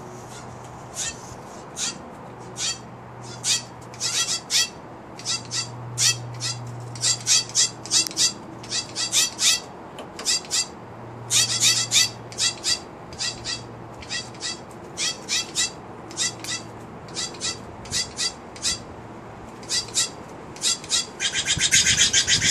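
Birds call nearby with sharp, repeated cries.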